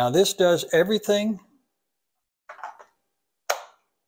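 A plastic battery clicks into place.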